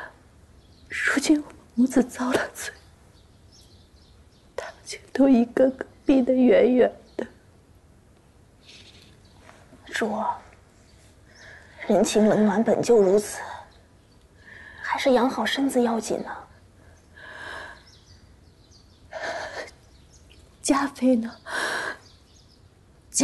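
A woman speaks weakly and sadly, close by.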